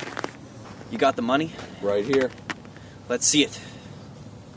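A man speaks loudly nearby outdoors.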